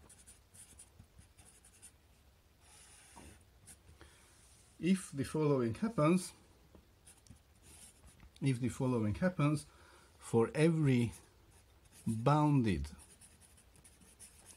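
A marker squeaks and scratches across a whiteboard in short strokes.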